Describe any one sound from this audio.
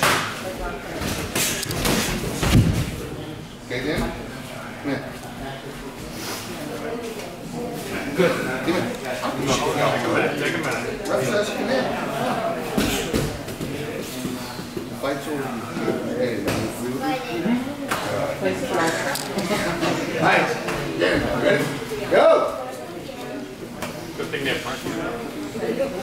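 Boxing gloves land punches with dull thuds.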